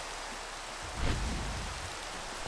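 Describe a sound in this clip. A fire flares up with a whoosh and crackles.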